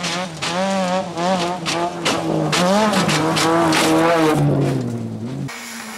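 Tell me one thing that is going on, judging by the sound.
Gravel sprays and rattles under a rally car's tyres.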